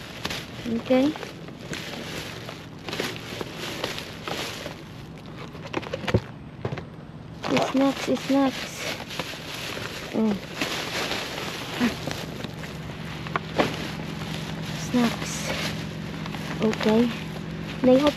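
Plastic bags rustle and crinkle as hands dig through them.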